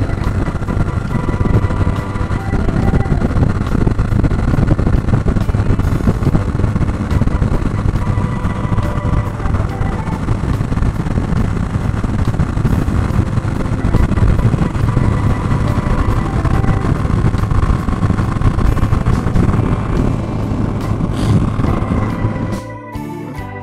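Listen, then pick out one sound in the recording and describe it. Wind roars against a microphone on a moving motorcycle.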